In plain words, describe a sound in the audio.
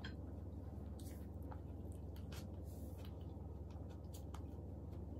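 A young woman chews and slurps food close to a microphone.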